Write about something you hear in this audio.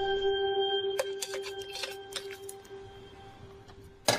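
Metal utensils scrape and clatter in a pan.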